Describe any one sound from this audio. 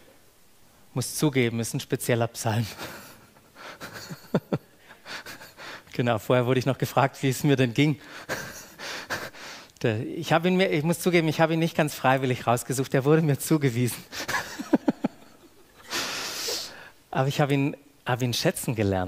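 A man speaks with animation into a headset microphone.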